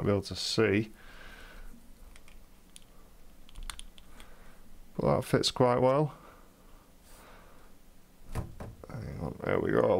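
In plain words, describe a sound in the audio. Small plastic items click and tap as hands handle them.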